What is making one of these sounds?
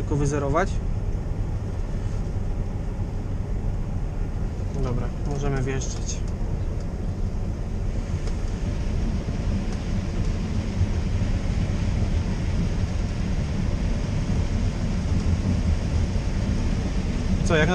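Corn stalks rustle and crackle as they feed into the harvester header.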